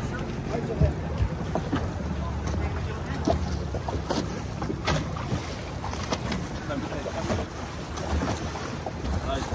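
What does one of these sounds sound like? Water laps and splashes against a small boat's hull.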